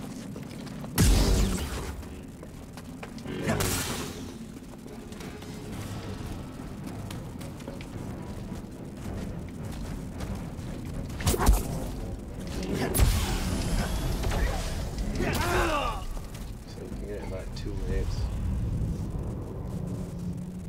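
A lightsaber hums and swishes through the air.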